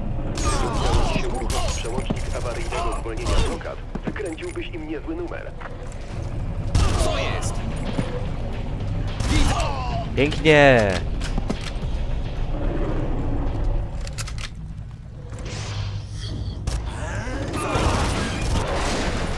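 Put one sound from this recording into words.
Automatic gunfire rattles in bursts.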